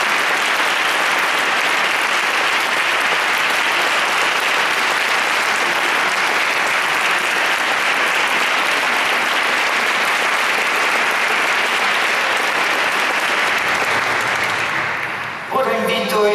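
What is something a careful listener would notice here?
An audience applauds steadily in a large echoing hall.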